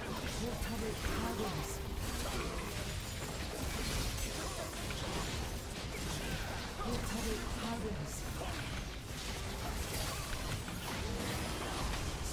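Game combat effects clash and zap rapidly.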